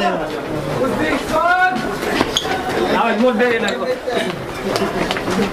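A crowd of young men talk and shout over one another nearby.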